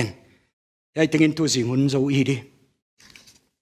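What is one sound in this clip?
A middle-aged man speaks calmly into a headset microphone.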